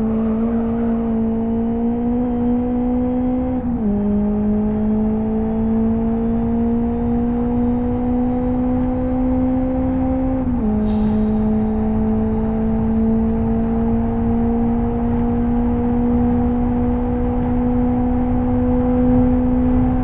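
A car engine drones steadily, its pitch slowly rising and dropping sharply at each gear change.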